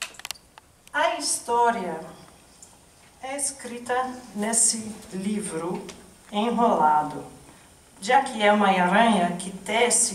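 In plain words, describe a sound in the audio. A woman speaks into a microphone with animation, heard through loudspeakers in a large hall.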